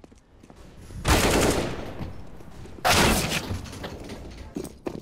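A rifle fires a burst of loud shots.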